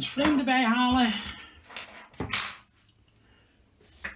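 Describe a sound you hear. Small metal screws click softly on a hard surface.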